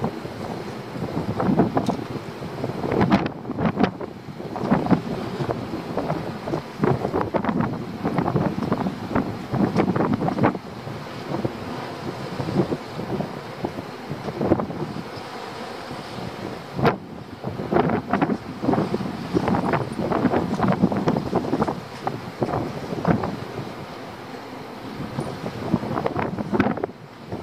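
Wind blusters and buffets against the microphone outdoors.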